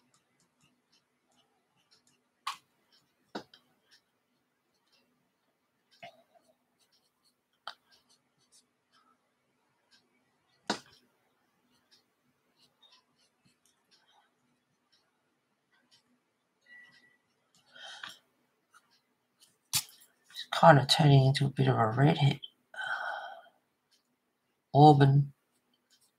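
A paintbrush strokes softly across paper.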